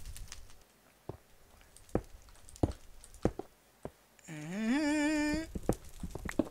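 A pickaxe taps and chips at stone blocks.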